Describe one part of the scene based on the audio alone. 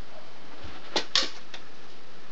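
A man slaps his arm a couple of times.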